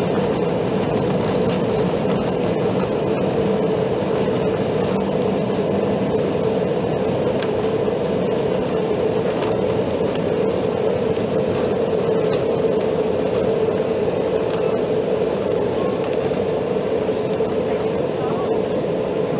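Jet engines roar steadily as an airplane rolls fast along a runway.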